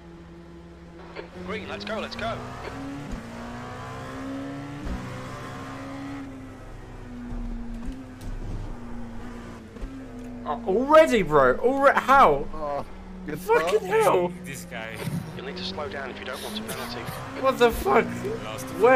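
A racing car engine drones and shifts pitch as it accelerates and slows.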